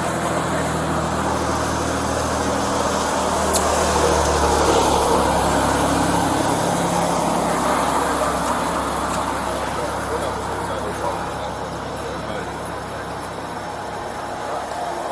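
Traffic rumbles by on a highway outdoors.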